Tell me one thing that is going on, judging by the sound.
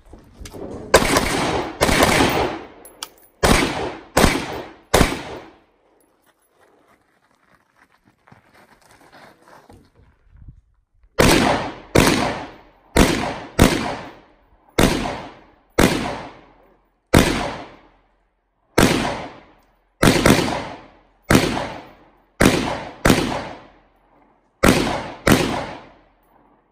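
Pistol shots ring out one after another outdoors, echoing off nearby hills.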